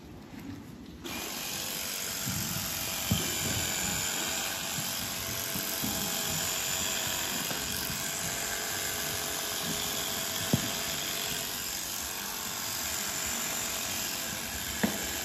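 An electric hoof grinder whirs steadily against a cow's hoof.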